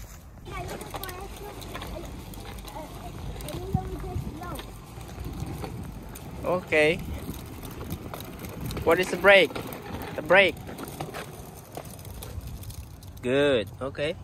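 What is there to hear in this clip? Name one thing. Small bicycle tyres roll over a concrete pavement.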